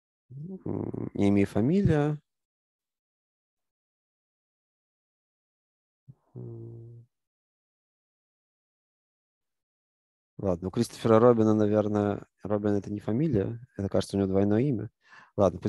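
A man speaks calmly and closely into a microphone, pausing now and then.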